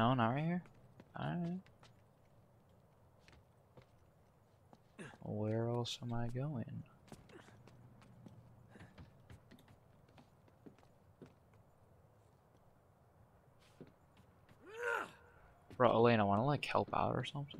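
Footsteps run and thud on hard ground and metal roofs.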